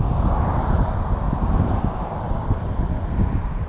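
A car drives past on a nearby road and fades away.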